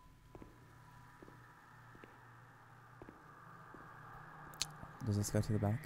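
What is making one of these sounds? Slow footsteps tap on a hard floor.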